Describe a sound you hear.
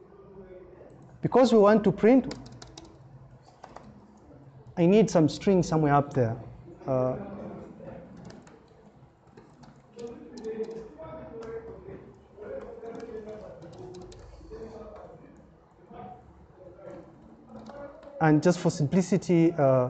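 Keys clack on a keyboard as someone types.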